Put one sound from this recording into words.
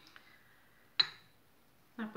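A small glass jar clinks on a counter.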